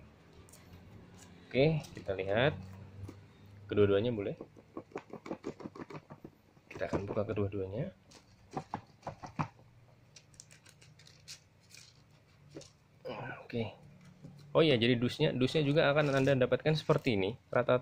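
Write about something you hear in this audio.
Cardboard boxes slide and scrape as hands handle them.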